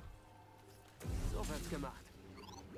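An energy blade sizzles and crackles as it cuts into a metal gate.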